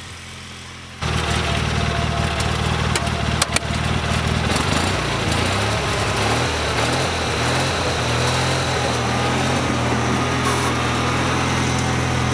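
A tractor engine runs loudly close by.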